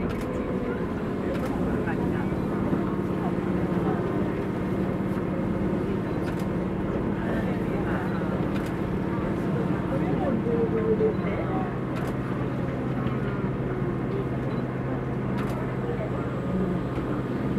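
A train hums steadily as it rolls along the tracks.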